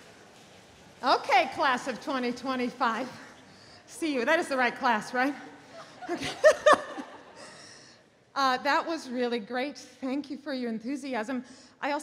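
A middle-aged woman speaks calmly into a microphone over loudspeakers in a large hall.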